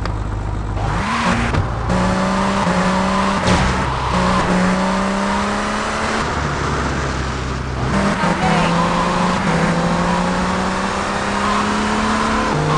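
A sports car engine starts and revs loudly.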